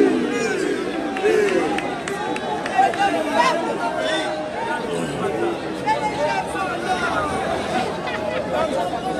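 A man speaks steadily into a microphone, heard over loudspeakers outdoors.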